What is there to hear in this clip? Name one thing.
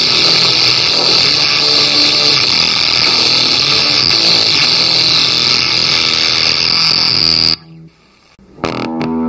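A heavily distorted electric guitar drones through an effects pedal.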